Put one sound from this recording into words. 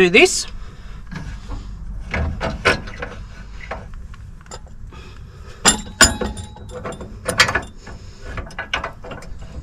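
A jack winder clicks and rattles as it is cranked.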